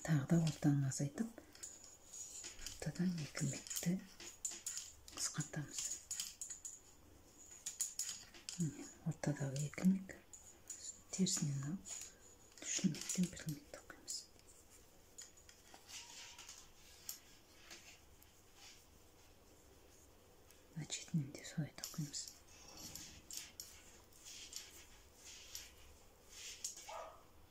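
Metal knitting needles click and tap together softly.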